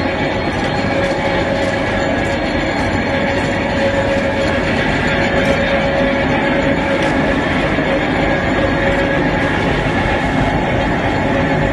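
A large rotary drum machine rumbles and drones steadily.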